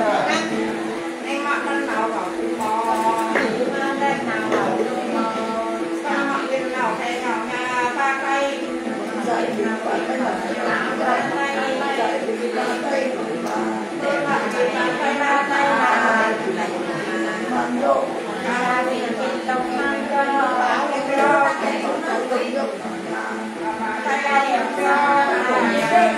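An elderly woman sings in a wavering voice, close by.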